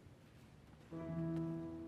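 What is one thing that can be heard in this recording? An orchestra begins to play in a large echoing hall.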